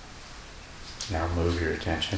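An elderly man speaks calmly, close to a microphone.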